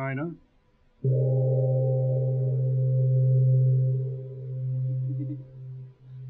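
A gong is struck once and rings on with a deep, steady hum that slowly fades.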